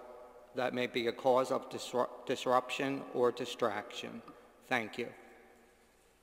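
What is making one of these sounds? An older man reads aloud calmly through a microphone in a large echoing hall.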